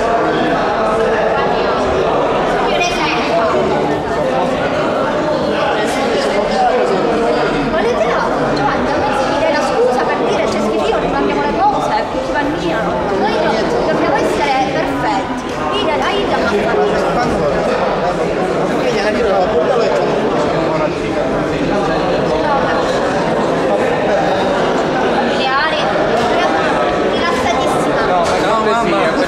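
Many people murmur and talk in the background.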